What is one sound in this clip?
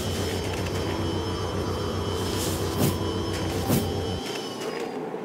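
A vacuum motor whirs and whooshes steadily, then cuts out.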